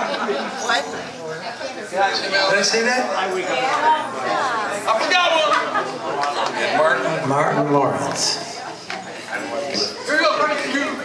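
A live band plays loud amplified music.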